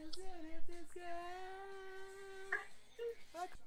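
A young man sings a long high note with his mouth wide open.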